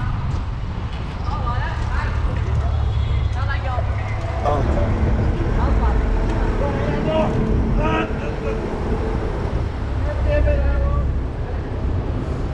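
Car and bus engines hum and rumble nearby in traffic.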